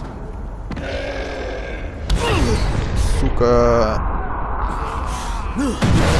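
Heavy weapon blows land with loud, dull thuds.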